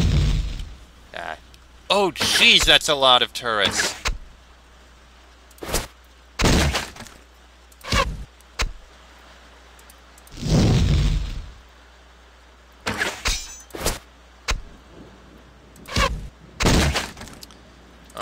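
Magic spells whoosh and crackle in short bursts.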